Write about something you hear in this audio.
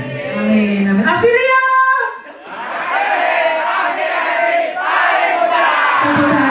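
A crowd of young people cheers and screams loudly in a large echoing hall.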